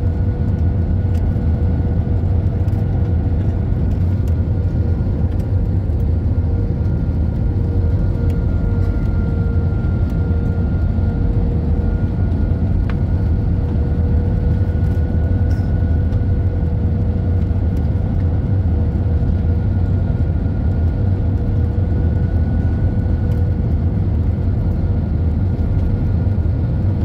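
Jet engines roar steadily from inside an airliner cabin.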